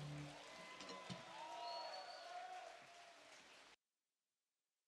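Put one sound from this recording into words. A band plays live music in a large hall and suddenly cuts off.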